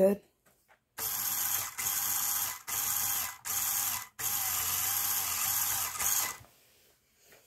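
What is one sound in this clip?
A toy car's electric motor whirs loudly in short bursts.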